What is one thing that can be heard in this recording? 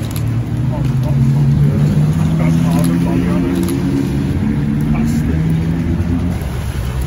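A sports car engine rumbles as the car pulls slowly away.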